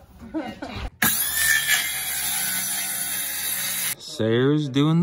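A circular saw whines loudly as it cuts.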